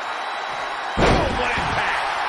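A wrestler slams onto the ring mat with a heavy thud.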